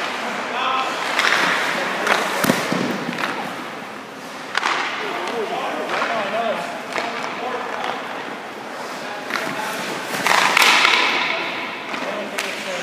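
Skates scrape across the ice in bursts.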